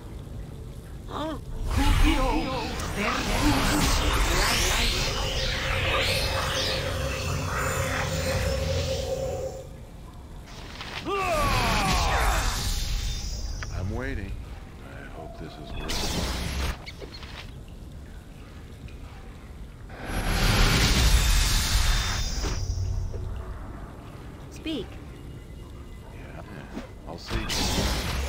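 Weapons clash and strike in a fight.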